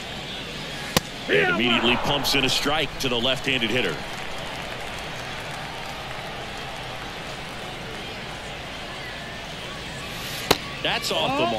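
A baseball pops sharply into a catcher's glove.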